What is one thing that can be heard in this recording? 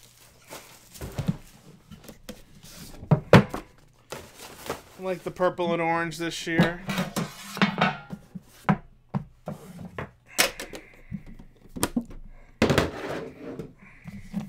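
Cardboard boxes knock and thud as they are set down and stacked.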